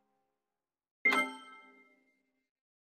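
A short chime rings once.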